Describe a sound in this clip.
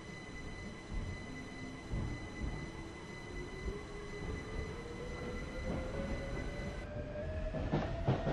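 An electric train motor whines steadily, slowly rising in pitch.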